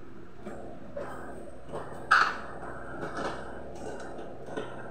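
Kitchenware clinks and clatters as it is handled.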